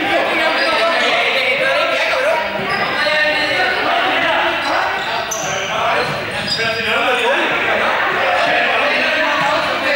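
Many young people chatter and shout in a large echoing hall.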